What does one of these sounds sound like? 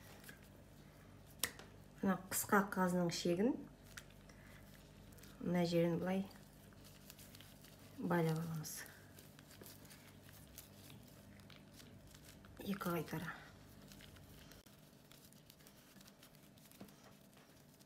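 Gloved hands handle wet raw meat with soft squelching.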